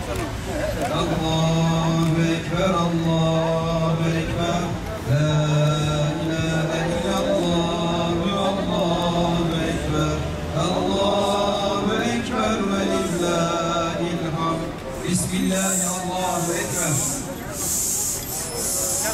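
A man chants a prayer in a slow, drawn-out voice through a microphone and loudspeaker.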